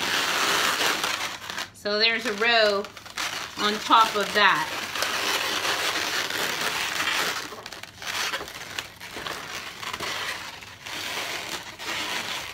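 Rubber balloons squeak and rub against each other.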